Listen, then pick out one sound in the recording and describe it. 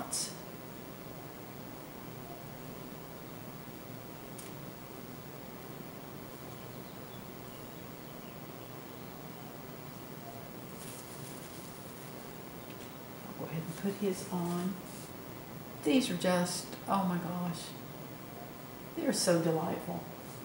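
A brush softly strokes paint onto a canvas.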